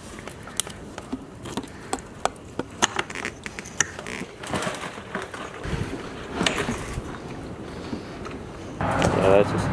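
Metal parts click and clatter as hands work on an engine.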